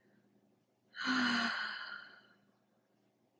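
A young woman whispers close to a microphone.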